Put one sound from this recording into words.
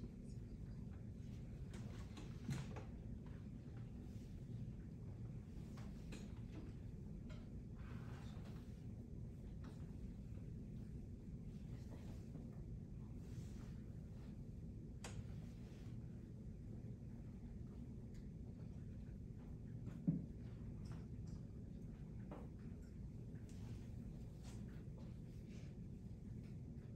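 A woman speaks calmly at a distance in a quiet room.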